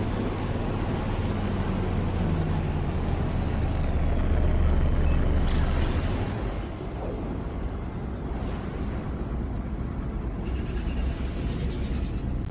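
A spaceship engine roars with a deep, steady rumble.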